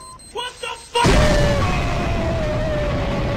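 A loud explosion booms and roars.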